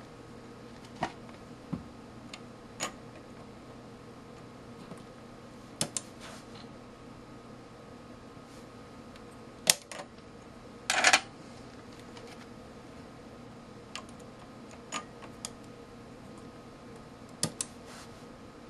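Small plastic clicks and snaps sound as a chip is pressed into a socket.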